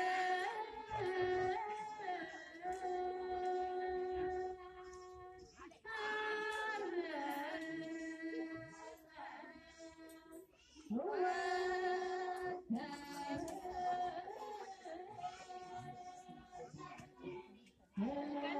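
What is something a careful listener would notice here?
A crowd of men and women chants in unison in long, held phrases nearby.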